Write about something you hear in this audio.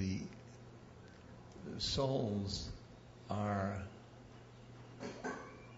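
An elderly man speaks slowly and thoughtfully into a microphone, with long pauses.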